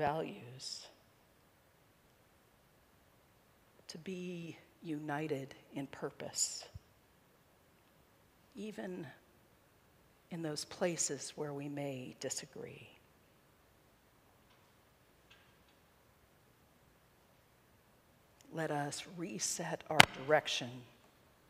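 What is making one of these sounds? A middle-aged woman speaks calmly into a microphone, with long pauses.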